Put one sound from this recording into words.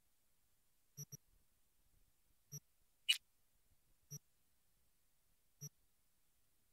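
Short electronic menu clicks chime now and then.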